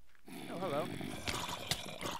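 A monster groans in a low, warbling voice.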